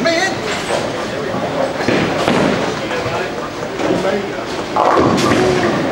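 A bowling ball thuds onto a lane and rolls away with a low rumble.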